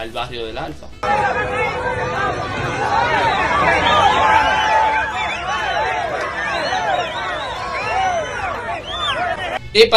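A large crowd outdoors cheers and shouts loudly.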